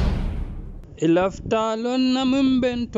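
A man sings.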